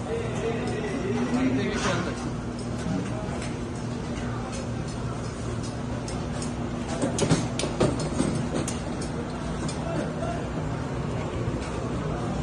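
A crowd murmurs in the background of a busy street.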